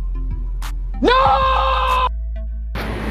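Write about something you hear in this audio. A man shouts in surprise.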